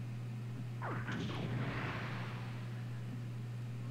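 A robot's jet thrusters roar as it leaps into the air.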